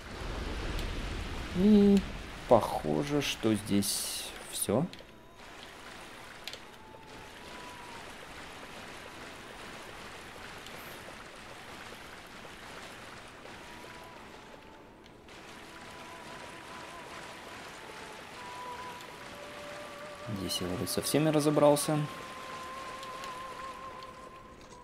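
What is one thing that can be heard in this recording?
Footsteps splash and slosh through shallow water.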